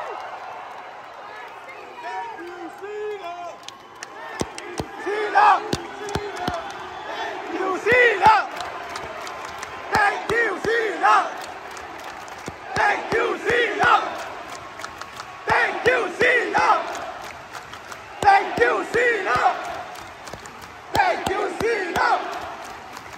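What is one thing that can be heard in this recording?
A large crowd chants loudly in rhythmic bursts in a big echoing arena.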